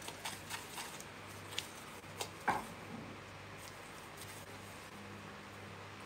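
A spoon scrapes and stirs in a glass bowl.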